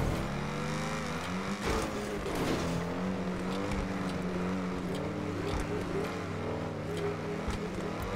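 A car engine revs hard and roars at high speed.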